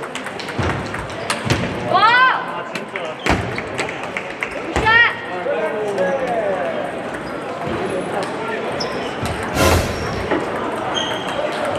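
Ping-pong balls click sharply against paddles and tables in a large echoing hall.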